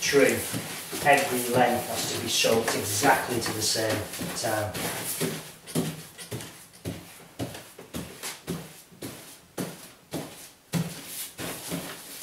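A pasting brush swishes across wallpaper.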